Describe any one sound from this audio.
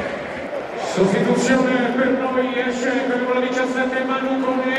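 A stadium crowd sings loudly together in a chant.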